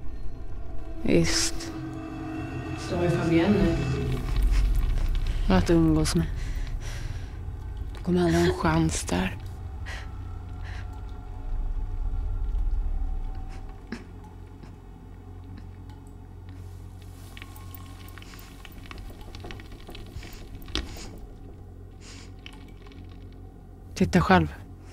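A young woman speaks in a tearful, trembling voice close by.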